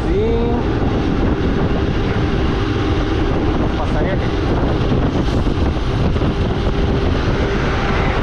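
A tractor engine rumbles close by as it passes.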